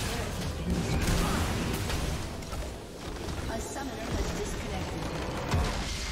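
Magic blasts and explosions crash in a video game.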